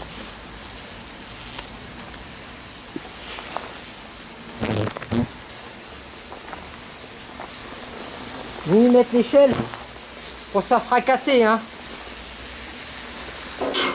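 Hornets buzz softly on a nest.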